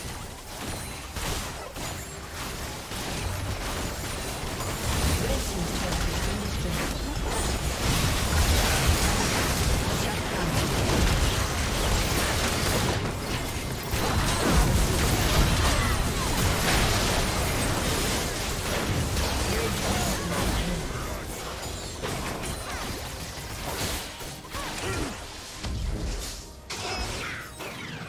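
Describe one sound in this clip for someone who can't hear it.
Spell effects whoosh and blast in a busy game fight.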